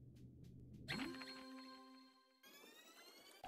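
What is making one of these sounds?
A bright musical chime rings out.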